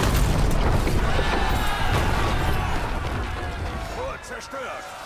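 A wooden gate breaks apart with a loud crash and rumble.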